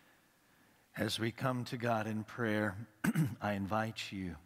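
An older man reads aloud calmly into a microphone.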